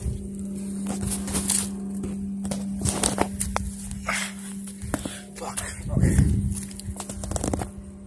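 Dry twigs snap and crackle underfoot.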